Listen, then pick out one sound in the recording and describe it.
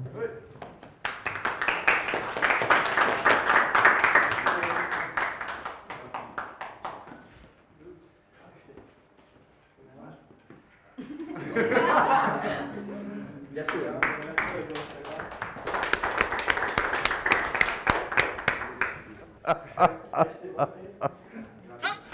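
A group of people applauds in a room.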